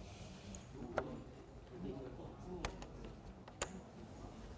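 Game pieces click as they are placed on a board.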